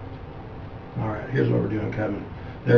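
A man speaks briefly nearby.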